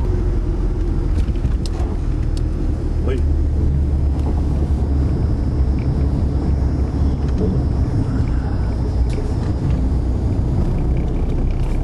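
Tyres roll on the road with a steady low rumble.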